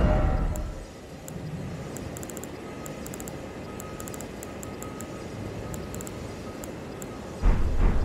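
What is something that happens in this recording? Soft menu clicks tick rapidly as items are scrolled.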